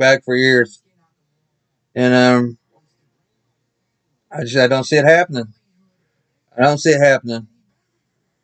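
A man speaks close to the microphone in short bursts, with pauses between them.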